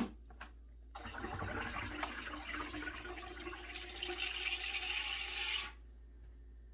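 A soda maker hisses and buzzes as it pumps gas into a bottle.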